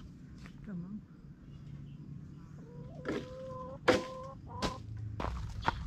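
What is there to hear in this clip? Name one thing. A pole knocks against tree branches.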